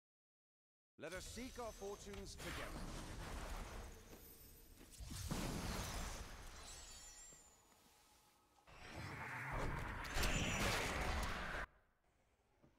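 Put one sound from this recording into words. Magical spell effects whoosh and crackle loudly.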